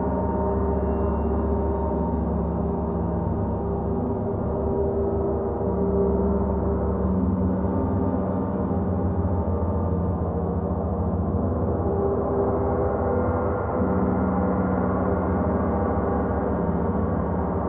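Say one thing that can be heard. A man strikes a gong with a mallet.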